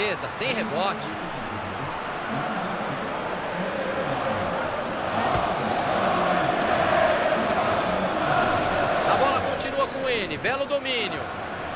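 A large stadium crowd roars and chants steadily, swelling louder midway.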